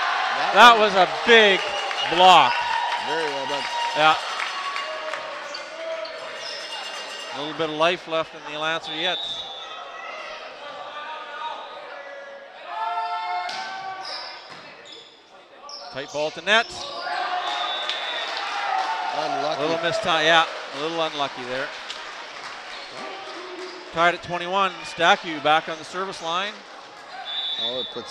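A volleyball is struck with a hard smack.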